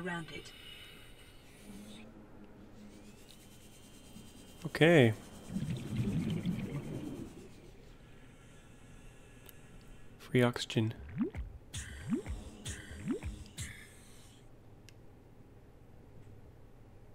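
A small underwater propeller hums steadily.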